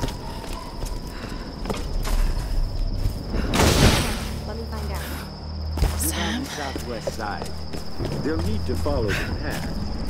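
Footsteps crunch on dirt and leaves.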